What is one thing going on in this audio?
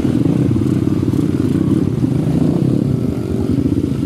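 Water splashes around a motorbike's wheels.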